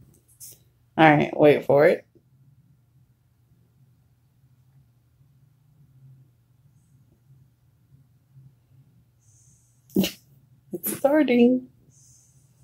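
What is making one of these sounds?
A dog whines and grumbles in its sleep, close by.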